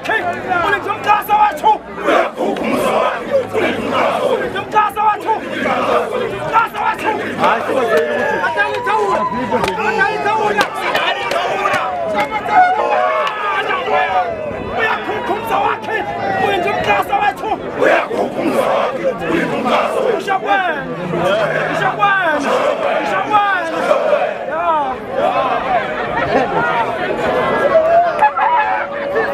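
A large crowd of men chants and sings loudly together outdoors.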